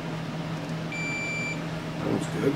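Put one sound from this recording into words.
A multimeter gives a short high beep.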